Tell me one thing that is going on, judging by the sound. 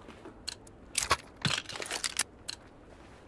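A gun is handled with sharp metallic clicks.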